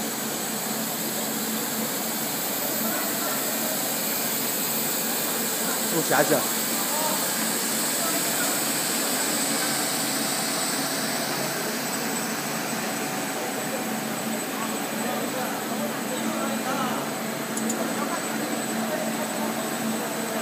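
Factory machines hum and whir steadily in a large hall.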